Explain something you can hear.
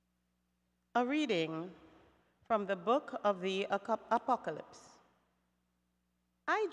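A woman reads aloud calmly into a microphone, with pauses.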